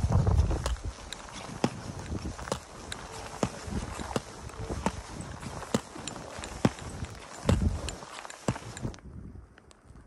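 Boots crunch and shuffle through deep snow.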